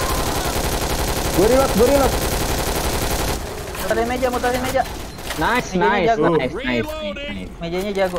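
Rapid gunfire rattles at close range.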